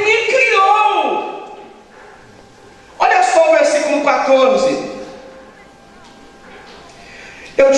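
A man sings loudly into a microphone, heard through loudspeakers with an echo.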